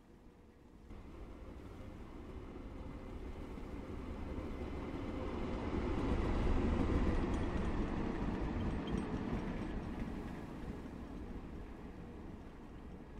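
A diesel locomotive rumbles past and slowly fades.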